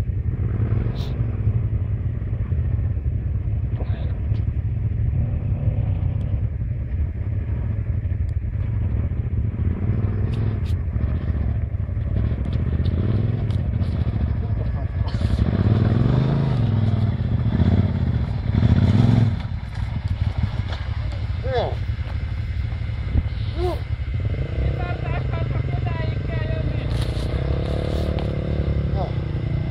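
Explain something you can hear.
Dirt bike engines rumble and rev close by.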